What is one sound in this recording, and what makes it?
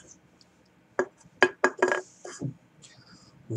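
A metal can is set down on a table with a light knock.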